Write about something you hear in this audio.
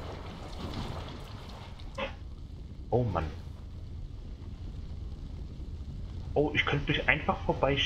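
A fire crackles softly nearby.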